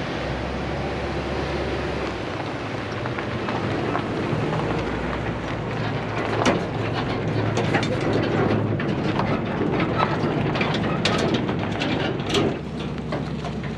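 Tyres crunch slowly over gravel.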